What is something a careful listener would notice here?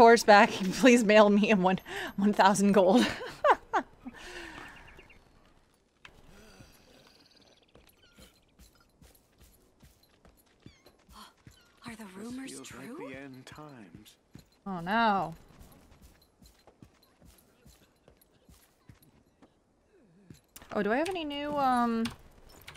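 A young woman talks and laughs into a close microphone.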